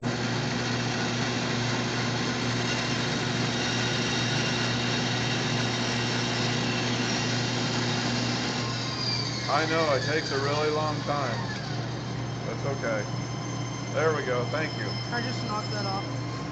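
A power tool hums steadily.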